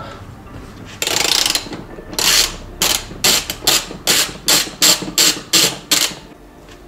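A hand tool ratchets in short, regular bursts.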